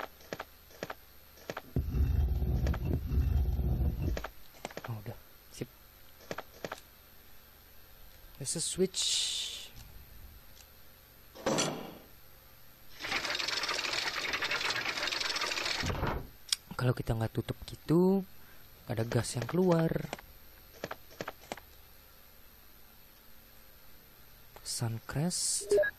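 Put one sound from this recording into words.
Buttons click on a game controller.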